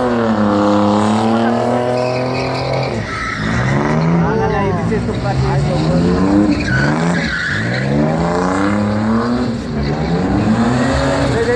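A car engine roars and revs up and down close by.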